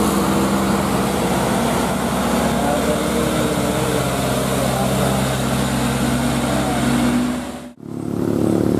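A loaded diesel dump truck climbs a hill under load.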